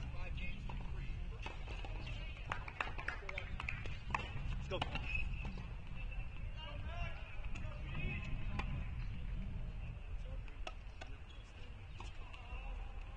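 Tennis balls bounce and are struck on a court outdoors.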